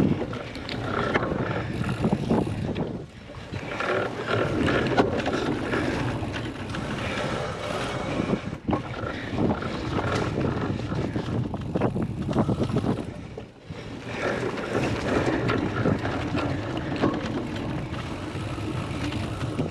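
Bicycle tyres rumble and rattle over a bumpy muddy track.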